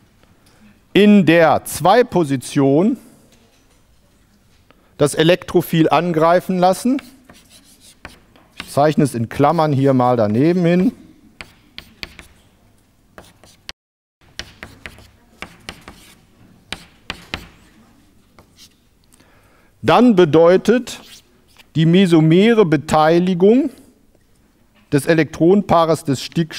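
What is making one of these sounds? A middle-aged man lectures calmly, in bursts with pauses.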